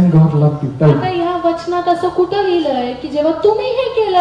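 A young woman sings through a microphone and loudspeakers.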